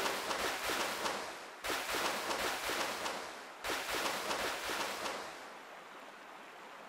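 Water rushes and splashes along a stream.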